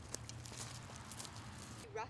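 Bicycle tyres roll over dry leaves.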